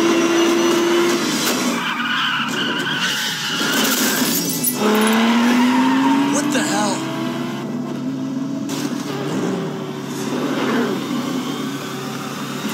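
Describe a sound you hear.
Sports car engines roar at high speed.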